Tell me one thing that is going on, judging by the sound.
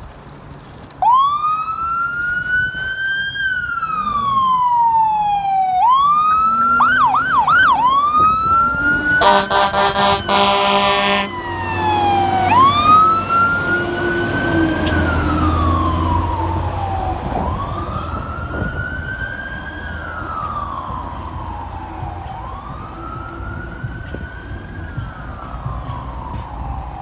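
A fire engine siren wails, rising and falling.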